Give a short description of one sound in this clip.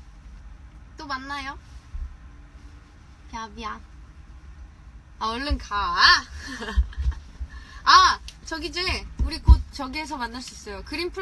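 A young woman speaks cheerfully and animatedly into a nearby phone microphone.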